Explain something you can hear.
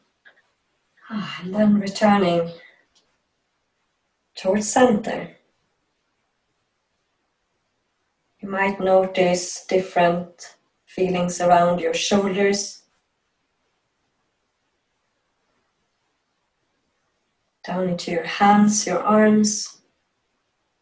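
A woman speaks calmly and close by, with pauses between phrases.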